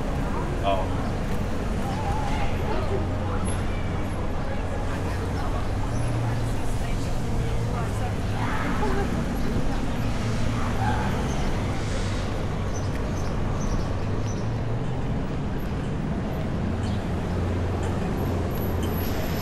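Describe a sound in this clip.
Traffic hums along a city street outdoors.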